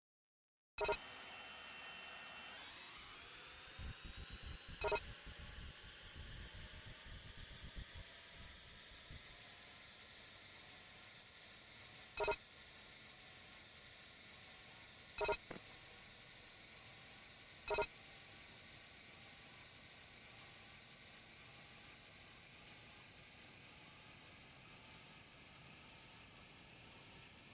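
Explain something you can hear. A jet engine whines, rising in pitch as it spools up, then roars steadily.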